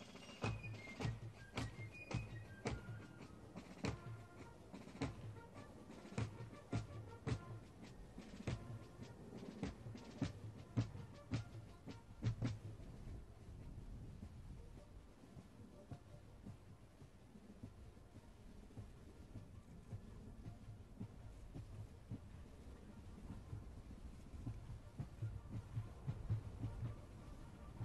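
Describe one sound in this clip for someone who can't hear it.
Drums beat a steady marching rhythm.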